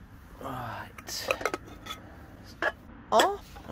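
A metal pot clinks as it is handled.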